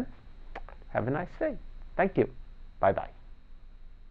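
A middle-aged man speaks calmly and warmly into a close microphone.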